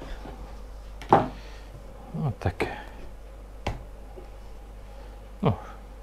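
Meat slaps down onto a wooden board.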